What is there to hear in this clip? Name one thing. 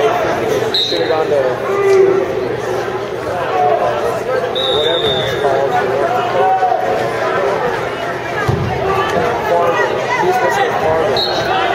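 Spectators shout and call out in a large echoing gym.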